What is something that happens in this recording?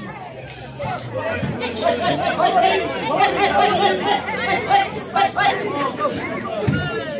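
A man shouts excitedly nearby.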